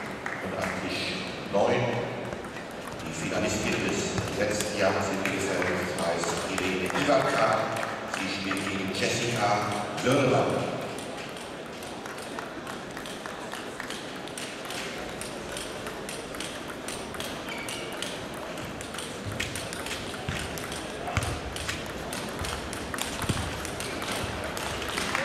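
A table tennis ball clicks back and forth off bats and a table in a large echoing hall.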